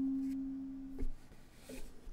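A ukulele's strings are muted with a soft thump.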